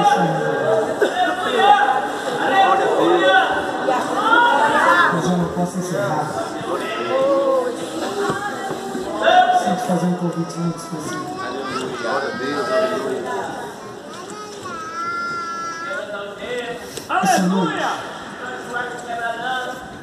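A large crowd of men and women sings together in a large echoing hall.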